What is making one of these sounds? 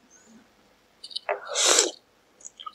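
A young man slurps noodles loudly, close to the microphone.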